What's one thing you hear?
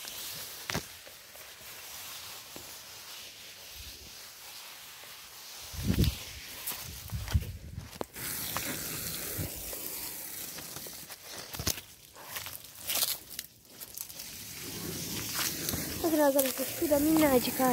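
Leaves rustle and brush close by.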